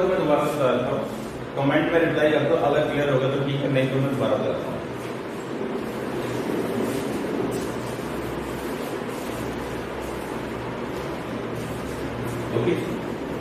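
A man speaks calmly, lecturing in a slightly echoing room.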